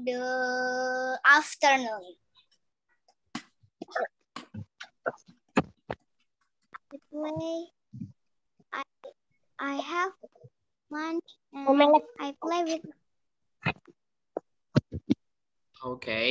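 Children talk in short bursts through an online call.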